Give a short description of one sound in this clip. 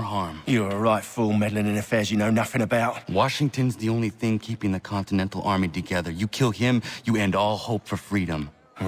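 A man speaks angrily and forcefully close by.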